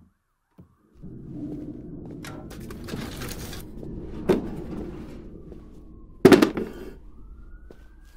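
A plastic chair scrapes across the floor.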